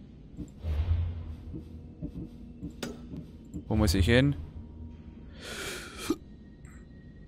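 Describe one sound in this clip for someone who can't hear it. Game menu sounds whoosh and chime as menus open and close.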